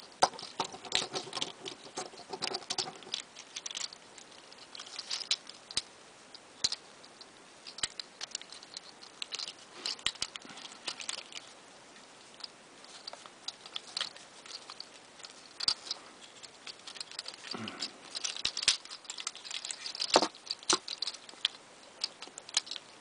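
Plastic toy parts click and snap as hands twist them.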